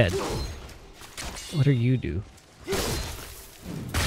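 A blade slashes through the air.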